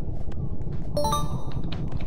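A bright chime rings out with a few quick notes.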